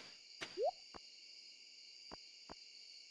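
Soft clicks tick a few times.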